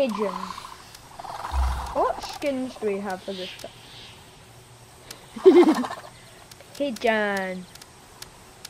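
A small creature squawks and chirps in short bursts.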